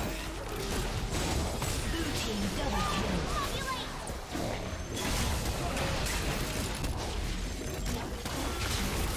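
Fantasy spell effects burst and crackle in a busy video game battle.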